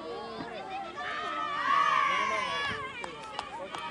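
A group of young players shouts a loud cheer together.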